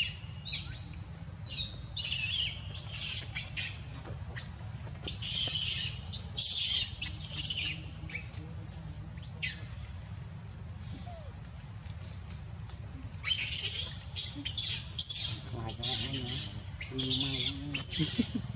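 A baby monkey squeaks and squeals in short bursts close by.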